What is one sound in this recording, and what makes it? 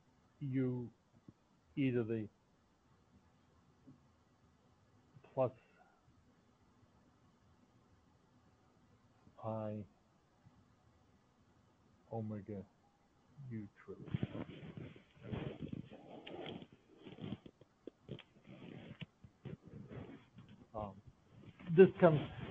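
A man speaks calmly with pauses over an online call.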